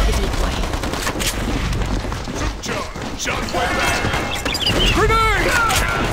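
Rapid gunfire crackles in sharp bursts.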